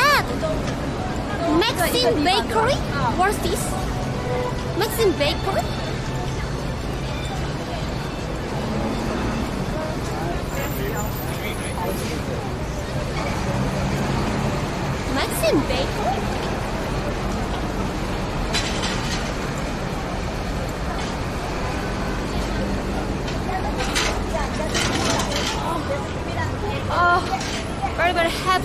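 A young woman talks with animation close to a microphone.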